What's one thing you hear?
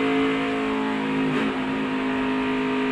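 A race car engine shifts gear with a brief dip in pitch.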